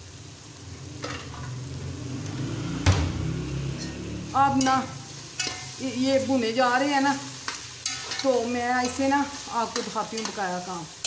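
Vegetables sizzle in a hot pot.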